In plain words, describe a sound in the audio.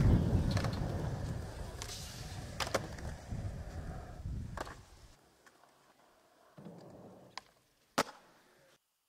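A skateboard clacks sharply against concrete and ledges.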